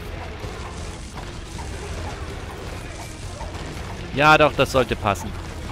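Small arcade-style guns fire in rapid bursts.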